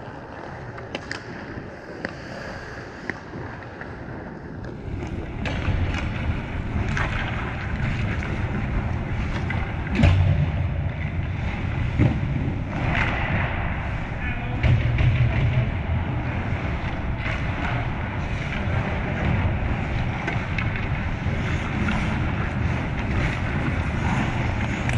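Hockey pucks clack sharply off sticks.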